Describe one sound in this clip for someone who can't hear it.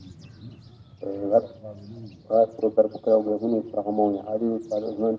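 An elderly man chants slowly in a steady voice, close by.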